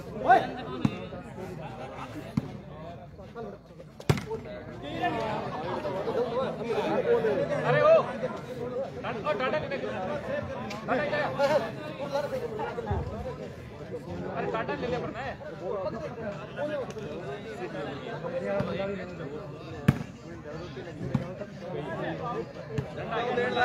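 Men shout and call out to each other outdoors.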